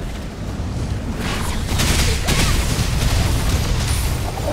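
Magic spells burst and crackle in combat.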